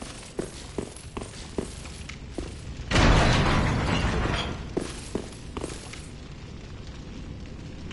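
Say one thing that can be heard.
Armoured footsteps thud on stone.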